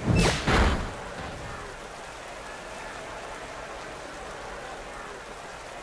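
A large crowd murmurs steadily in a big open arena.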